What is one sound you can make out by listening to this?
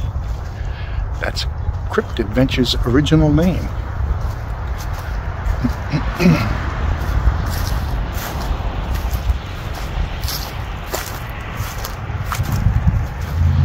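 An older man talks casually and close by, outdoors in wind.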